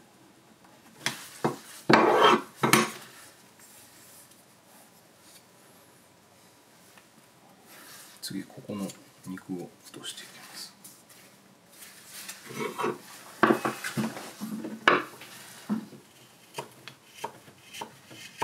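A knife scrapes and shaves wood in short strokes.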